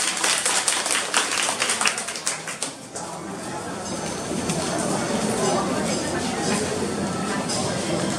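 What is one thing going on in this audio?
A crowd of men and women murmurs and chatters close by.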